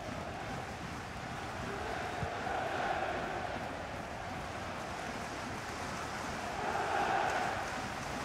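A large stadium crowd roars and chants steadily, swelling at times.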